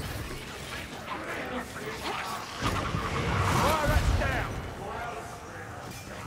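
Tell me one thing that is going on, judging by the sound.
Blades slash and clang against attacking creatures.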